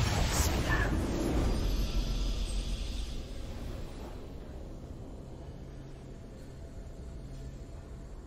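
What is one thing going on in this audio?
A short victory fanfare plays softly.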